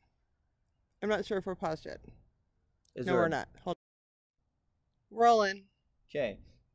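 A man speaks calmly close by in short phrases.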